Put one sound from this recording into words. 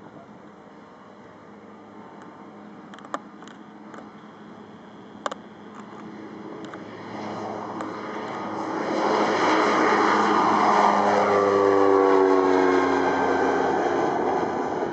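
A propeller plane's engine roars, growing louder as it takes off and passes close overhead.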